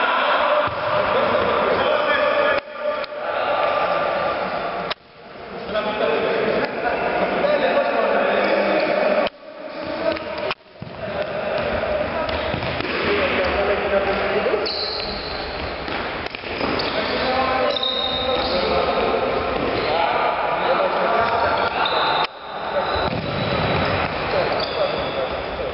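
Men shout and call out to each other in a large echoing hall.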